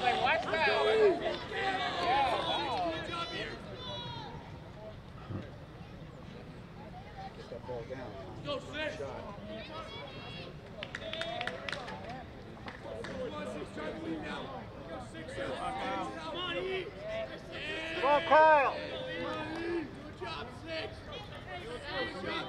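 Young men shout and cheer encouragement from nearby.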